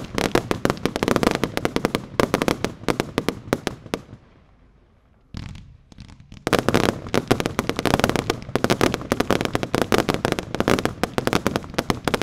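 Fireworks crackle and bang in rapid bursts outdoors.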